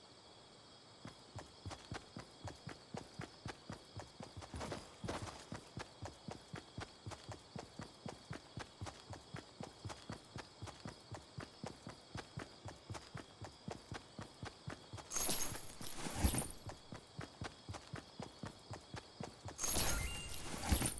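Quick footsteps run steadily over grass.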